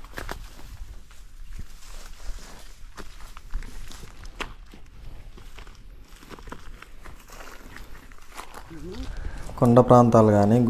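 Footsteps crunch on dry grass and stony ground.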